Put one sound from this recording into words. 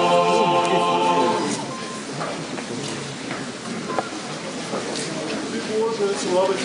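A large crowd murmurs in a hall with some echo.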